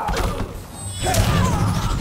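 A crackling energy blast whooshes past.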